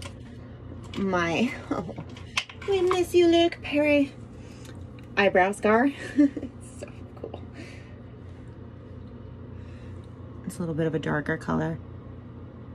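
A woman speaks casually close to a phone microphone.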